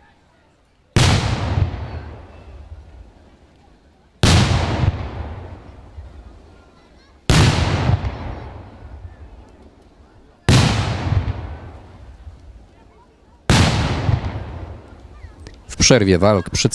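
Loud explosions boom one after another outdoors, each rumbling and fading away.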